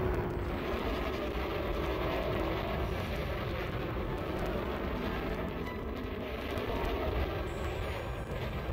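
A spaceship's engines roar with a steady, low rumble.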